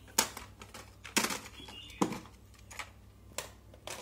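Buttons click on a cassette deck.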